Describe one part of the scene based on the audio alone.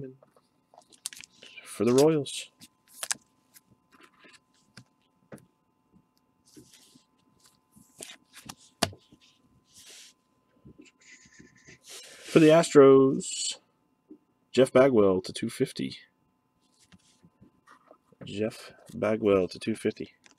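Plastic card cases rustle and click in hands.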